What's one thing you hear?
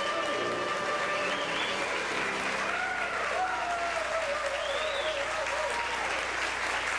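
Trombones play a lively jazz tune.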